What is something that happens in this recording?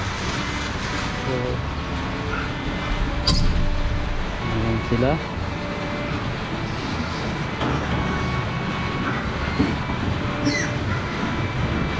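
Pigs grunt and squeal nearby.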